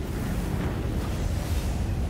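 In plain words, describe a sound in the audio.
Electricity crackles briefly.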